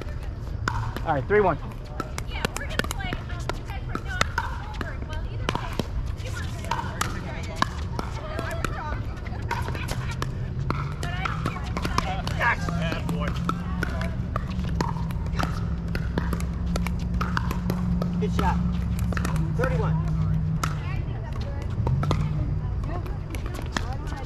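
Paddles smack a plastic ball back and forth in sharp pops.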